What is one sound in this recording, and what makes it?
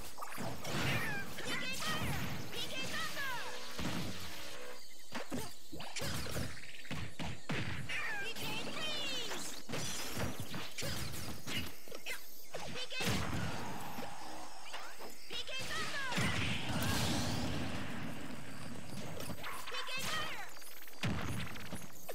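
Magical attacks whoosh and sparkle.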